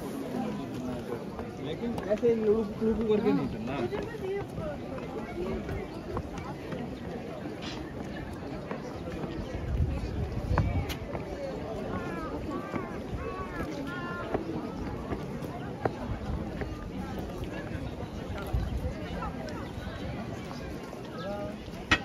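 A busy crowd chatters all around outdoors.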